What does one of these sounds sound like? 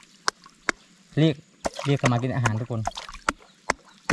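A hand swishes and splashes through shallow water.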